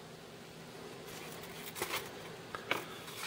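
Leather creaks and rustles as a knife sheath is handled.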